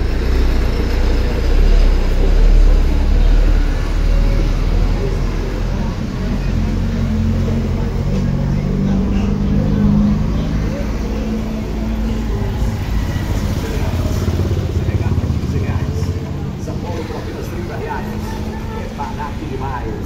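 Small motorcycles ride past one after another.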